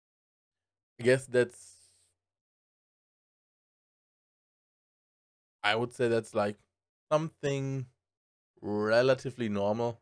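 A man speaks close to a microphone, with animation and in short bursts.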